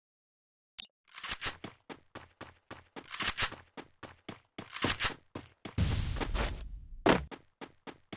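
Footsteps patter quickly across a hard floor.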